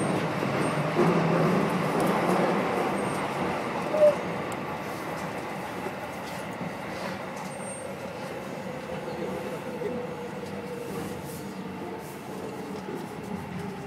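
A train slows as it pulls into a station.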